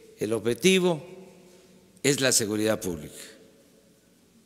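An elderly man speaks calmly into a microphone in short phrases.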